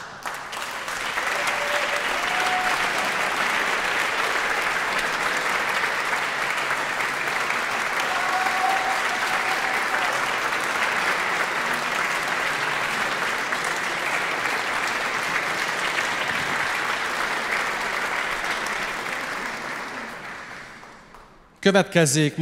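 A large audience applauds steadily in an echoing hall, then the clapping fades away.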